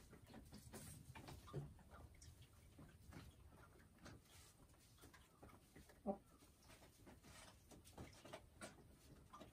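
A hen clucks softly and croaks nearby.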